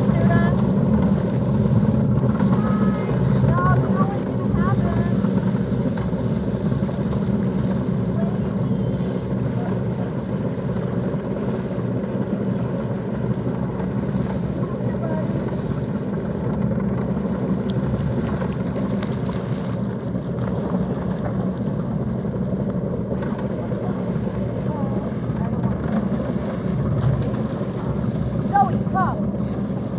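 A motorboat engine idles steadily close by.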